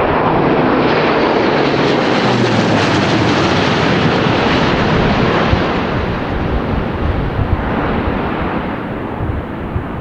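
A propeller aircraft roars past close by, its engines droning loudly and slowly fading.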